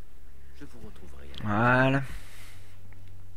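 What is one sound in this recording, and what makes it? A man replies in a low, calm voice.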